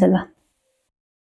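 A woman speaks close to a microphone.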